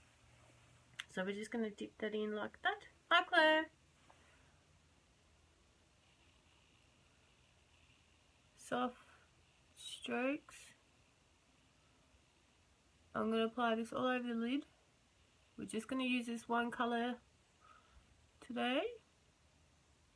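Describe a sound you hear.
A young woman talks calmly and close up, in short bursts with pauses.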